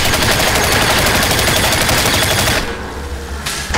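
Gunfire blasts rapidly in loud bursts.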